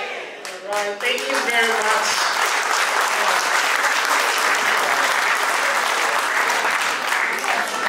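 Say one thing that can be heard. A crowd claps and applauds steadily.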